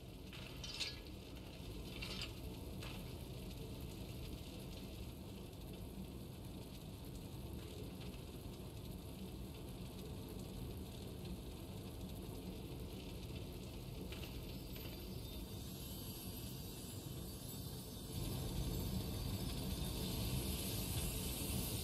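Fire roars and crackles steadily.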